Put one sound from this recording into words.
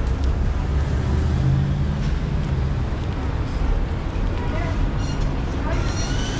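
Men and women chatter nearby on a busy street.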